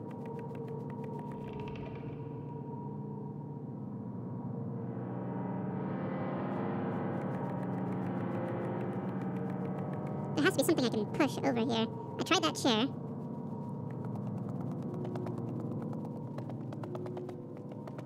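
Small footsteps patter across wooden floorboards.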